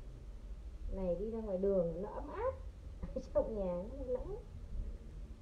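A woman speaks nearby with animation.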